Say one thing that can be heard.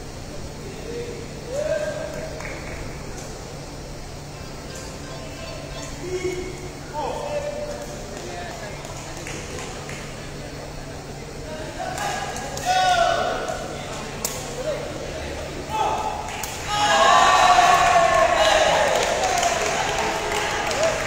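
Players shout and call out in a large echoing hall.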